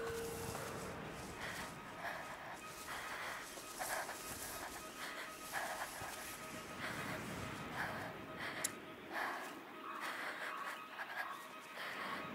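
Leafy plants rustle and swish as people push through them.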